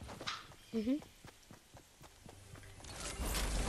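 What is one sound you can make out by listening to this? Quick footsteps patter across hard ground.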